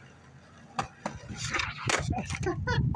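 A skateboard clatters as it lands on concrete.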